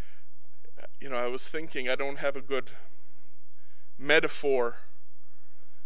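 A man speaks slowly and solemnly into a microphone.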